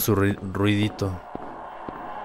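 A young man speaks close to a microphone with animation.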